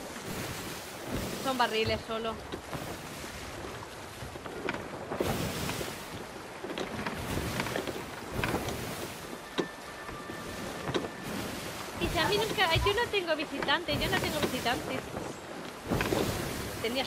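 Waves slosh and splash steadily all around.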